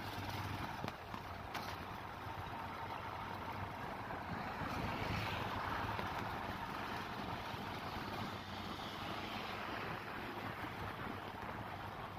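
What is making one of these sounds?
Tyres rumble steadily on a paved road.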